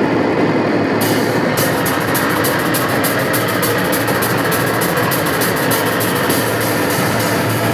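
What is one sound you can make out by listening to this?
Drums and cymbals crash steadily.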